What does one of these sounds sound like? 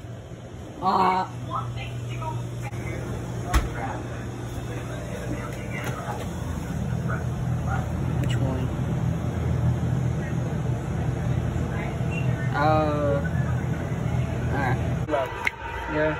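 A refrigerator hums steadily nearby.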